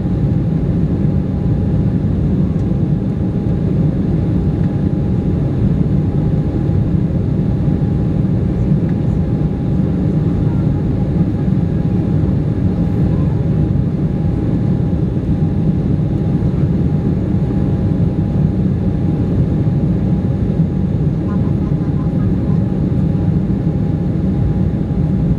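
Jet engines roar steadily, heard from inside an airliner cabin.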